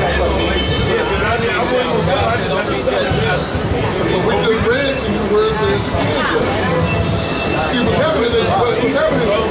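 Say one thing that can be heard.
A man speaks loudly and with animation close by, outdoors.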